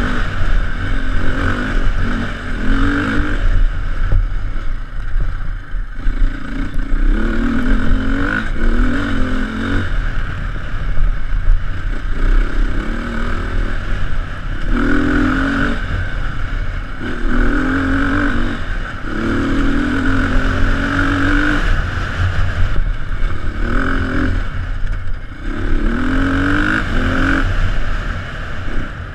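A dirt bike engine revs and roars up and down close by.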